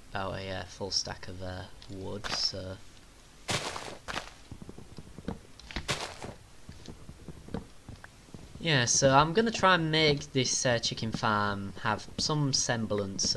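Leaves rustle and crunch as they are broken.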